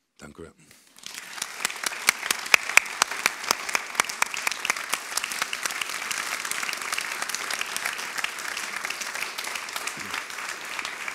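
An audience applauds loudly in a hall.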